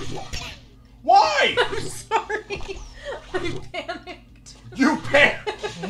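A woman laughs through a microphone.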